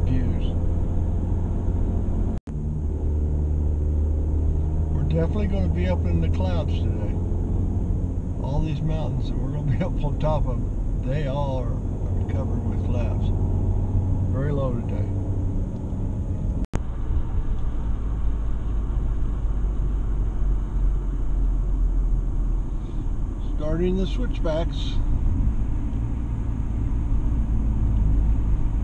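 A car's engine hums steadily from inside the car.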